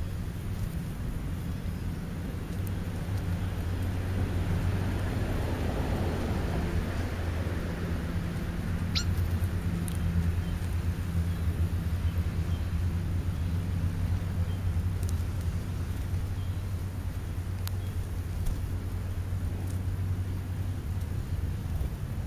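Birds peck and rustle at food in the grass close by.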